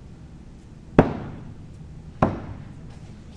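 An axe thuds hard into a wooden target, twice in quick succession.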